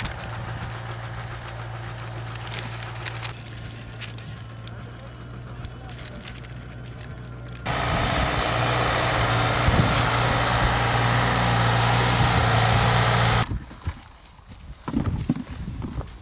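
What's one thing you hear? Potatoes knock together as they are dropped into a bucket.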